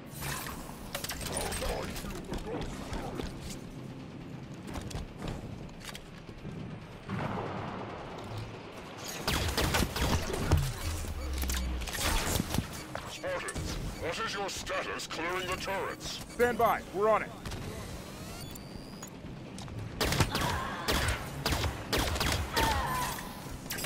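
Gunshots fire in quick bursts, with sharp cracks and blasts.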